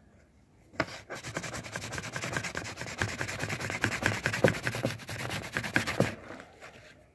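An abrasive pad rubs on plastic.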